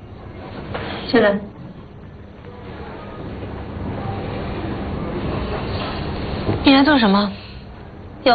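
A young woman speaks briefly and firmly, close by.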